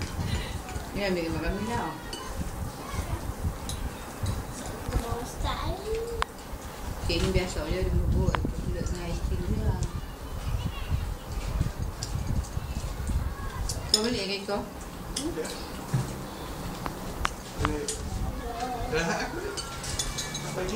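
Voices talk casually nearby.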